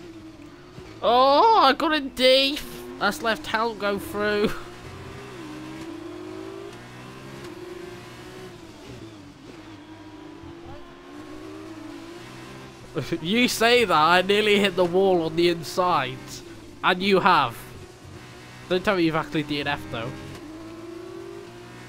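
A racing car engine whines steadily, shifting pitch as gears change.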